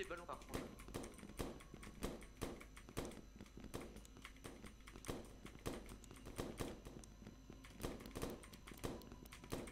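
A balloon pops sharply.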